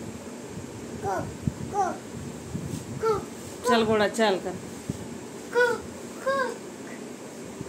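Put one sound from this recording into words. A small child babbles in short high cries.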